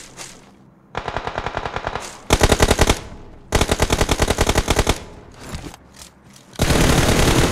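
Rapid gunfire bursts in quick rounds.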